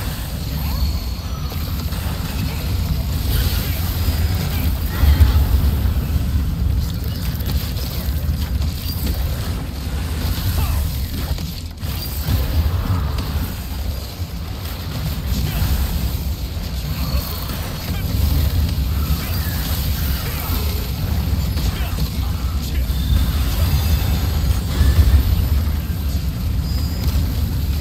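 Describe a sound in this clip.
Fire spells burst and roar in a fight.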